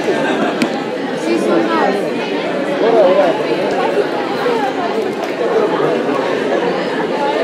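Many young people chatter at once in a room with some echo.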